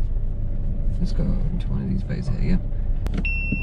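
A young man speaks calmly from close by inside the car.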